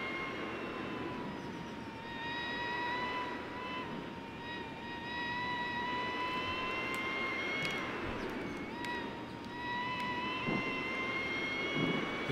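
A motorcycle engine whines at high revs, rising and dropping in pitch as gears shift.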